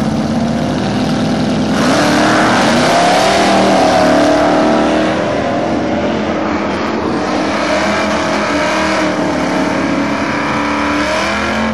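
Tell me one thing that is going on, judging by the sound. A loud race car engine roars and revs up as the car launches.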